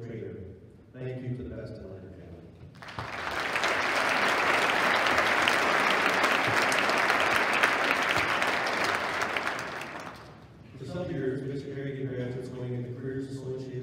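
A man speaks calmly over a loudspeaker in a large echoing hall.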